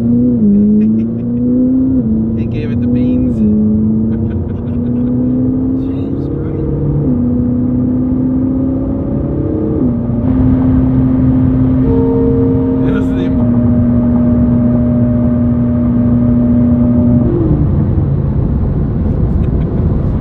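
A sports car engine roars loudly, its pitch rising and dropping with each gear change.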